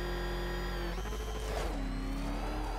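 Metal scrapes loudly.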